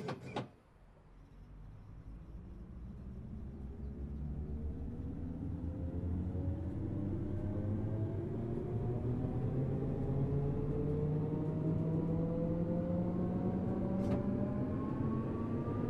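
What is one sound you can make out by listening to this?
Train wheels rumble along the rails, growing louder.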